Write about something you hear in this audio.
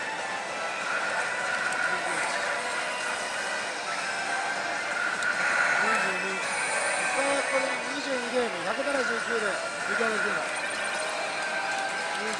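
Buttons on a slot machine click.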